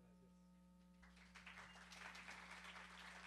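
An audience applauds in a room.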